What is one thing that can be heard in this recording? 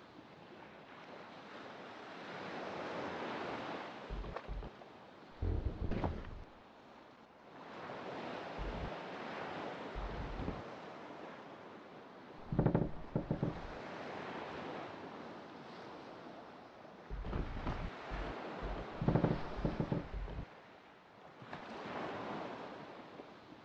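Waves wash and roll steadily around a small boat on open sea.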